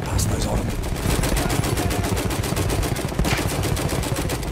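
Rapid gunfire rattles nearby in steady bursts.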